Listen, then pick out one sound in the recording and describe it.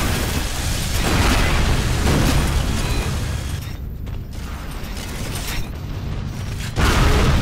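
A rapid-fire energy gun shoots in bursts.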